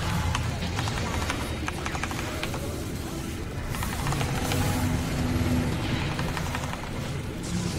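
Game spell effects crackle and clash in a fight.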